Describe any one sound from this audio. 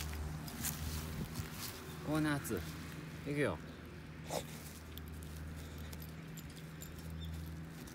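A dog sniffs and snuffles at the ground.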